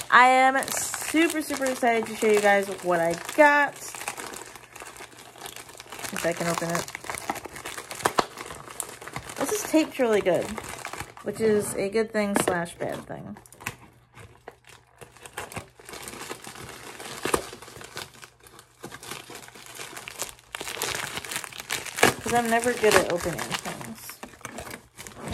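A plastic mailer bag crinkles and rustles in hands.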